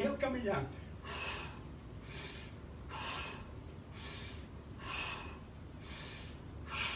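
An elderly man exhales sharply in rhythm.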